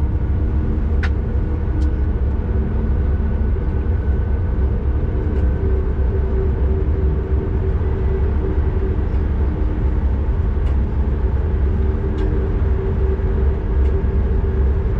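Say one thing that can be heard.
Train wheels click now and then over rail joints.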